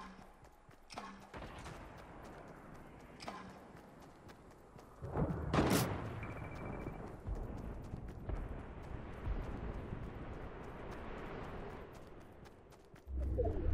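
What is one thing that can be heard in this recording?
Footsteps patter quickly across grass in a game.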